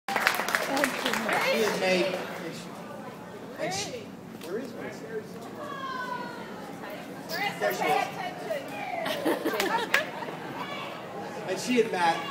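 A crowd of adults chatters in the background.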